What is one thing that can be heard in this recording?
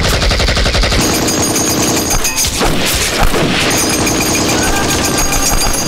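A machine gun fires in fast bursts.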